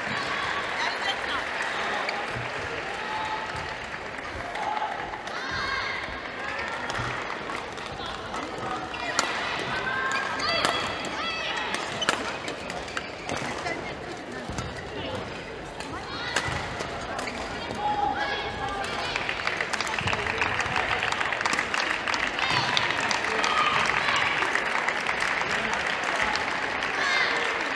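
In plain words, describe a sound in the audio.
A crowd of young people chatters and cheers in an echoing hall.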